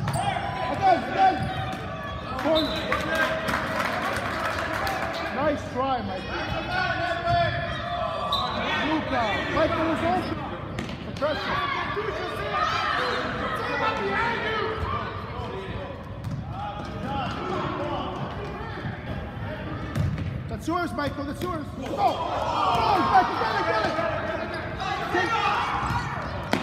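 Children shout and cheer throughout an echoing gym.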